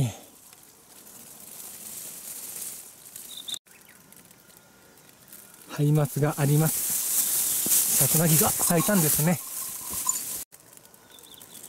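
Wind rustles leafy branches outdoors.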